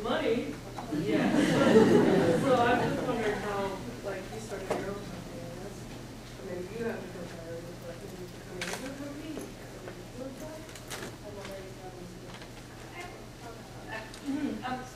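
A man speaks into a microphone in a large echoing room.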